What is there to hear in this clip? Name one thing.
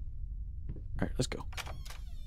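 A wooden door rattles and knocks.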